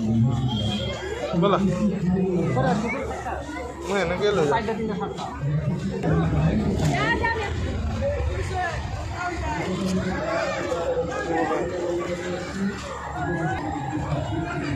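A crowd of people talk and chatter nearby.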